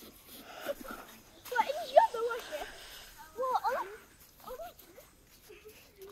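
Children shout and laugh playfully outdoors.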